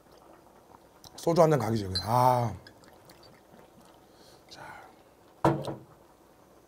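Glass clinks as a man pours a drink.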